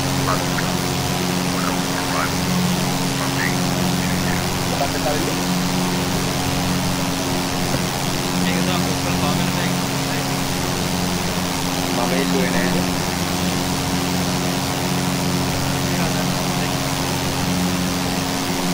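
A light aircraft engine drones steadily.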